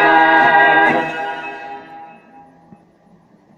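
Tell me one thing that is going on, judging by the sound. Music plays through a small loudspeaker and fades away.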